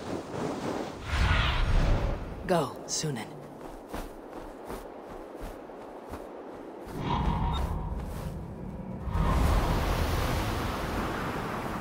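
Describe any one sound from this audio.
A large bird's wings flap heavily.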